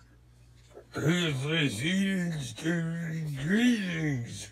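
A young man sings in a loud, drawn-out, wavering voice close by.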